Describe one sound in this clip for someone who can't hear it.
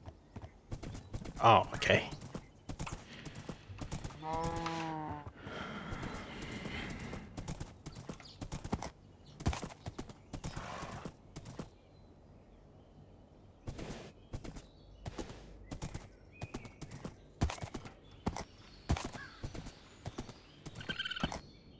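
A horse's hooves clop steadily on the ground.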